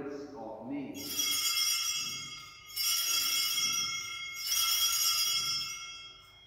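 Small hand bells ring out in bursts.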